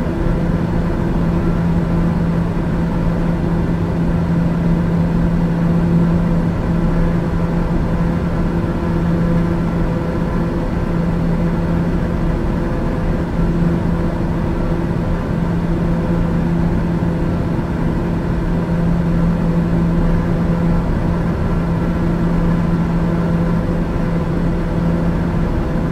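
Aircraft engines drone steadily, heard from inside the cabin.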